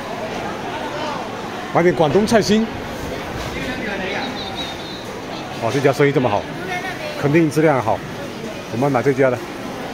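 A crowd of shoppers murmurs in the background.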